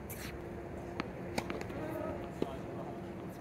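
A tennis ball bounces on a hard court a few times.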